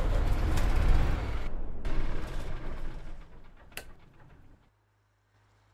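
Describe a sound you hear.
A bus engine rumbles loudly nearby.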